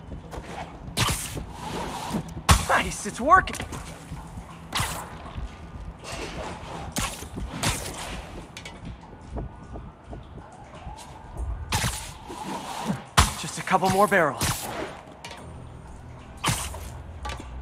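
Sharp whooshing thwips of webs shooting come again and again.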